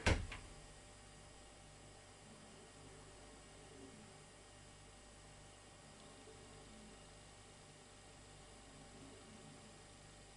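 A washing machine drum turns slowly with a low steady hum.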